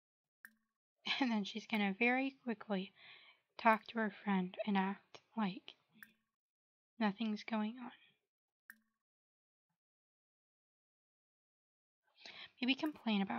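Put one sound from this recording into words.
A young woman talks with animation through a microphone, in short bursts.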